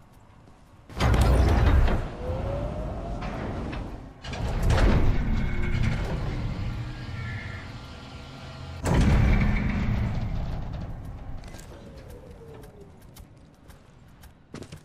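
A heavy crane rumbles and clanks loudly as it moves, in bursts that slowly fade.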